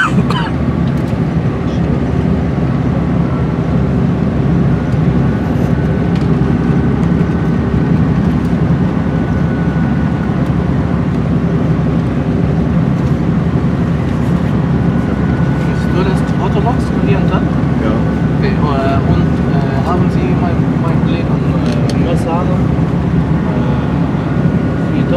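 A vehicle's engine rumbles steadily, heard from inside.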